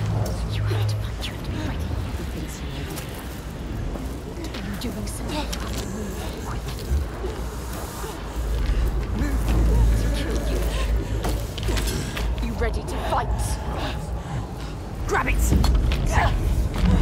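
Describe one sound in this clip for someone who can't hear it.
A man speaks in a low, menacing voice close by.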